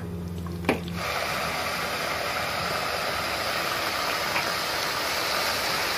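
Meat sizzles in a hot pot.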